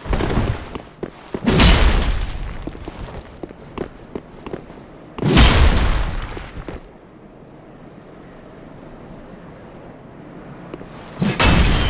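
A heavy blade swooshes and strikes with a loud thud.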